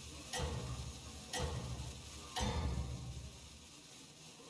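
Video game sound effects thump and chime in a repeating pattern.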